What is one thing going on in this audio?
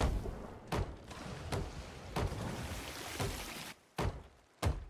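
Water sprays and gushes through holes in a wooden hull.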